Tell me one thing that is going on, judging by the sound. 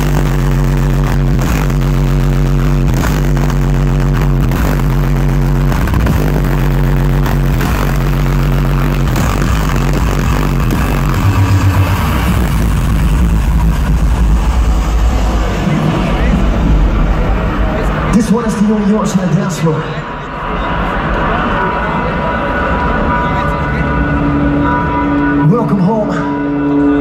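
Loud electronic dance music thumps through large speakers with a steady beat.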